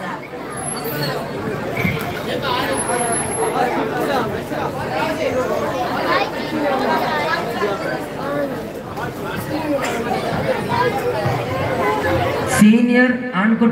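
A crowd of men chatters and murmurs.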